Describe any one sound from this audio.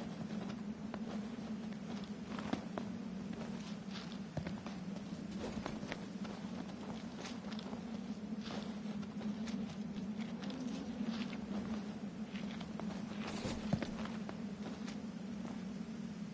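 Footsteps scuff on a paved road.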